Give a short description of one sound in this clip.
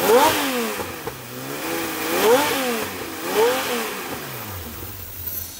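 An engine revs up and down several times.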